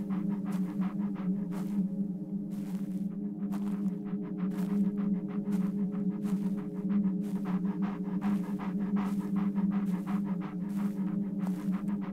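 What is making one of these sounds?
Footsteps crunch on dry leaves and rocks.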